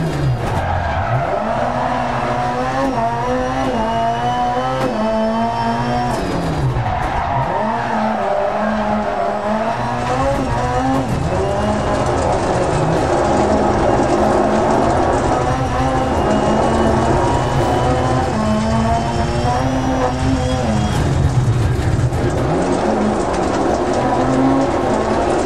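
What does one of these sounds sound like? A racing car engine roars loudly, revving up and down through the gears.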